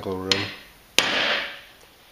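Metal parts clink together.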